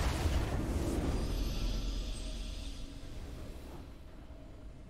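A triumphant fanfare swells loudly and then fades away.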